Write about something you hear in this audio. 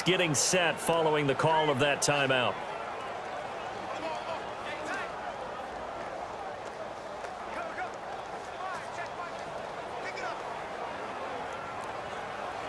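A large crowd murmurs steadily in the distance.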